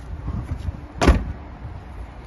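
A car's boot lid slams shut with a loud thud.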